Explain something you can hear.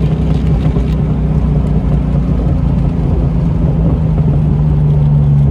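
Wind buffets loudly past an open car.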